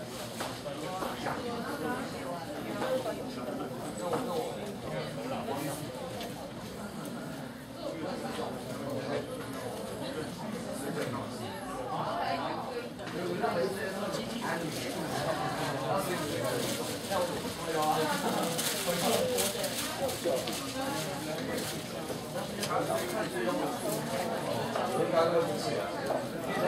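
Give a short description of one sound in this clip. Many people chatter at once in a large echoing hall.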